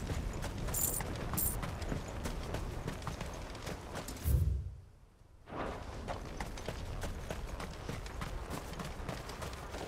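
Footsteps patter quickly on soft ground.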